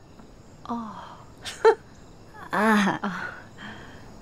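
A middle-aged woman speaks with surprise.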